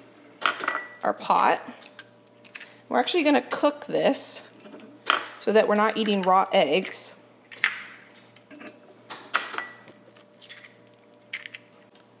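An eggshell cracks against a glass bowl.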